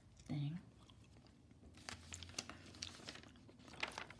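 Paper rustles and crinkles as sheets are moved.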